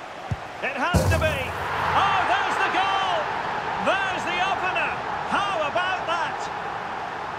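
A stadium crowd roars and cheers loudly.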